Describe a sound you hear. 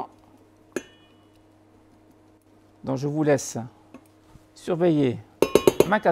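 A spatula scrapes and stirs in a metal saucepan.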